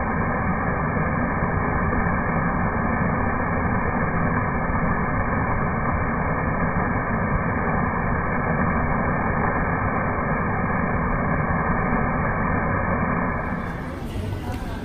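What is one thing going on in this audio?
Water from a fountain splashes and patters steadily into a pool.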